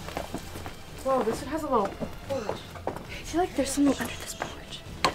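A girl talks close by.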